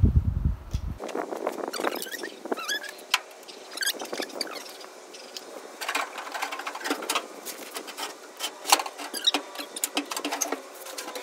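Metal tools clank and knock against metal.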